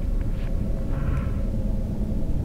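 A blade swishes through the air.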